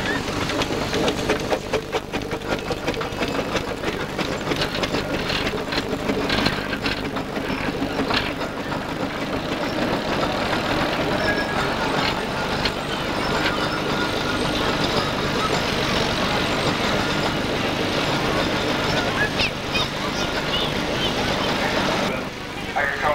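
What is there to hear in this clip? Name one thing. A steam traction engine chugs and hisses as it rolls slowly over the ground.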